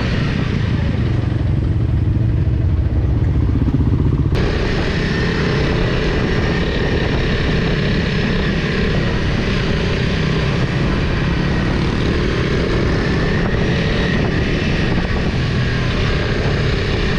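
A motorcycle engine rumbles up close as the bike rides along.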